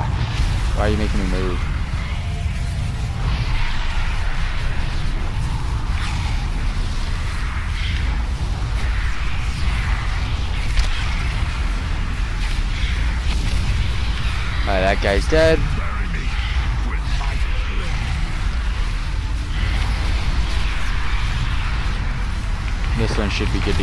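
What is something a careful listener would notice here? A young man speaks briefly and calmly into a close microphone.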